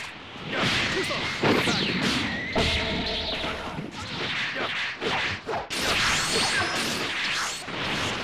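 Energy blasts whoosh and crackle in a video game fight.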